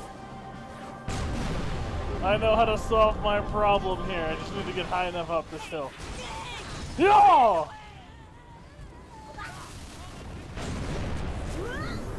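A rifle fires in short bursts during a battle.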